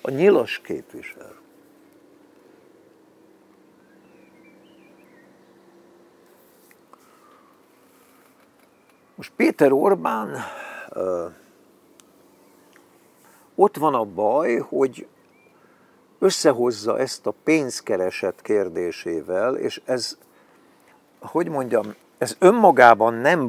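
An elderly man speaks calmly and close by, in pauses.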